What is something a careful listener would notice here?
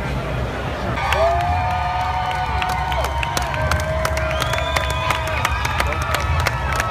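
A marching band plays brass horns loudly.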